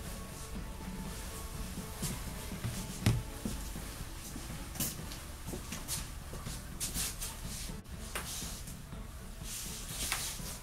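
Clothing rustles against a bag.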